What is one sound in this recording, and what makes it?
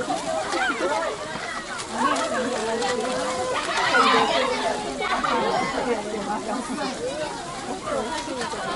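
Children shout excitedly nearby.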